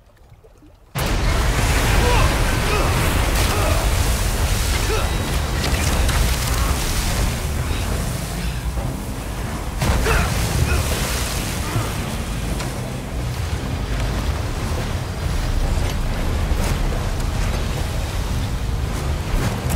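Water splashes and churns loudly as a boat races across a lake.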